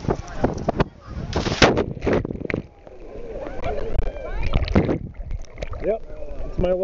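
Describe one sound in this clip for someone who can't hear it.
Water splashes close by.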